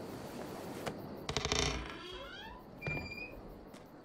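A man knocks on a heavy wooden door.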